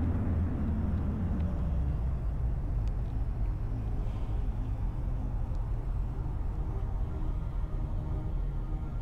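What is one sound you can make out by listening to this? A spaceship's warp drive rumbles low and steady.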